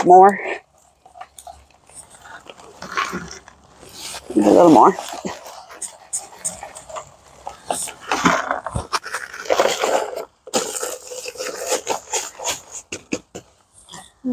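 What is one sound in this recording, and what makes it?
Sand and gravel scrape as they are scooped into a bucket.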